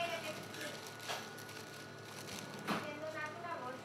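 A paper bag rustles.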